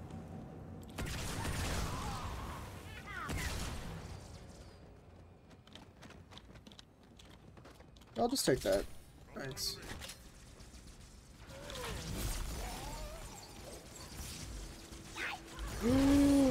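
Explosions and energy weapons boom and crackle from a video game.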